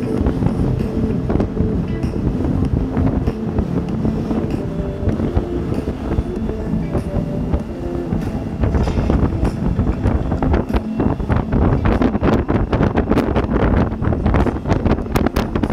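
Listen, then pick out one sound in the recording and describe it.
A motorcycle engine hums steadily while riding on a highway.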